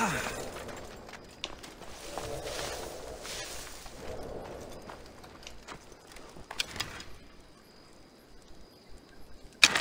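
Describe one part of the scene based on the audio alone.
Footsteps scuff softly over rocky ground.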